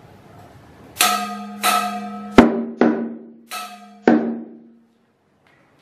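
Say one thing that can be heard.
A gong rings out with several loud, ringing strikes.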